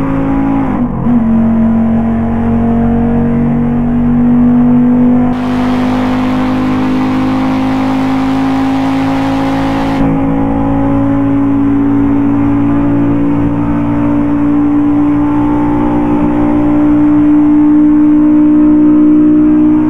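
A car engine hums steadily, its pitch slowly rising.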